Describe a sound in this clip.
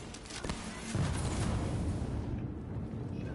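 A blast booms and rumbles.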